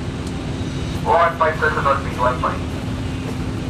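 A man calls out nearby.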